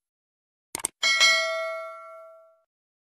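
A bell rings brightly and slowly fades.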